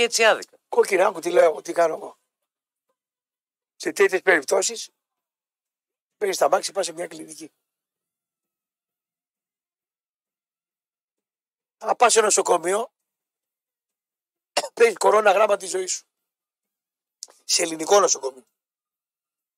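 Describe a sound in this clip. A man speaks in short bursts with pauses, heard through a microphone.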